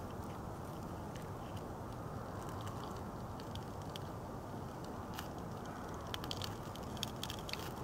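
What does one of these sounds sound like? Dry twigs rustle and crackle as they are laid onto a fire.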